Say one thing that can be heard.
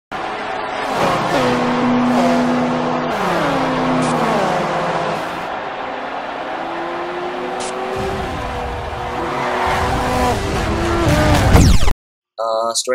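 Racing car engines roar past at high speed, rising and falling in pitch.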